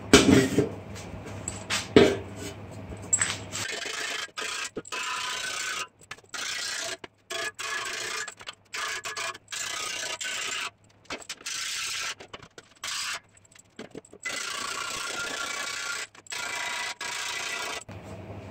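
A hammer taps sharply on sheet metal.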